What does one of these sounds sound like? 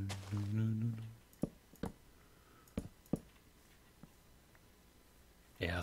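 Wooden blocks are set down with soft, short knocks.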